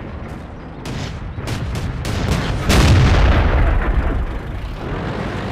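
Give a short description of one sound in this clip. Shells burst and crack close by with a loud boom.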